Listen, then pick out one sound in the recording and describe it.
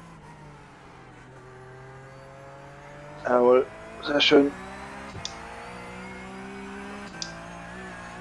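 A racing car engine drones steadily, its pitch shifting with the gears.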